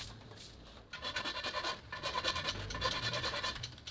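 A metal rod scrapes along a metal rim.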